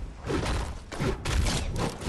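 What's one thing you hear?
A pickaxe strikes with heavy thuds.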